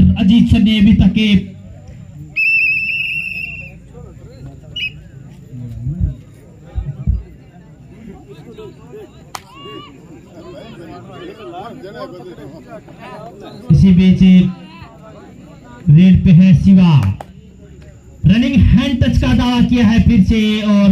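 Young men shout loudly nearby, outdoors.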